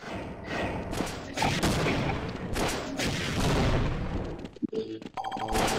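A gun fires in rapid, loud bursts.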